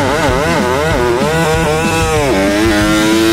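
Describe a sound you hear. A small racing motorcycle engine revs hard, its high whine rising and falling.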